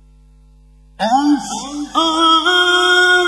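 An elderly man chants in a long, melodic voice through a microphone and loudspeakers.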